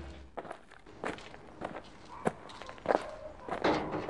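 Wooden planks knock against each other.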